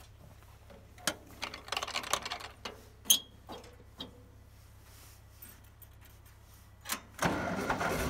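Metal levers click and clunk.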